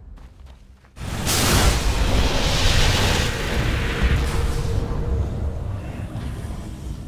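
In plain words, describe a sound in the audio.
Fighting erupts, with weapons clashing and spells bursting loudly.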